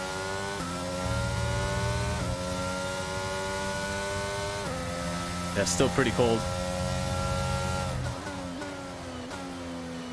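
A racing car engine revs high and drops in pitch with each gear change.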